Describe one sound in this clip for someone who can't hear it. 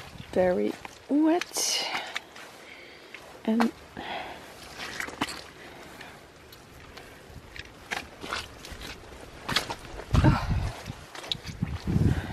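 Boots squelch and crunch through wet mud.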